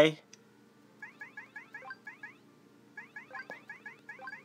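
Short electronic game blips sound in quick succession.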